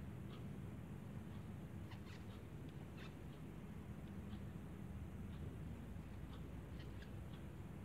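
A crochet hook clicks softly against yarn.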